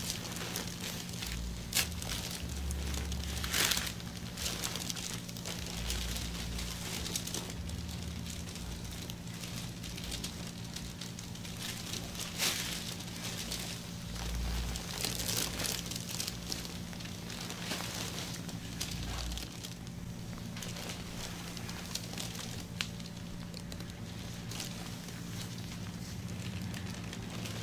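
Gloved hands rub and knead oiled skin with soft, slick squishing sounds.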